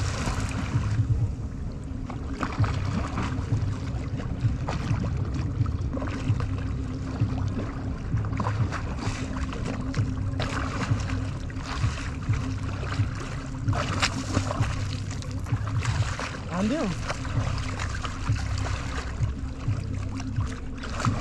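Water laps and sloshes close by.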